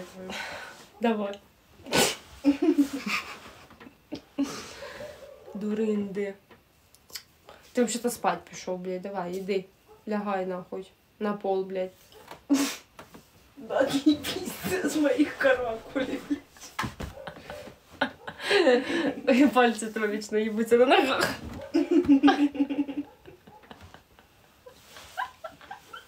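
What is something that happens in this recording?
A young woman talks close by with animation, sometimes sounding tearful.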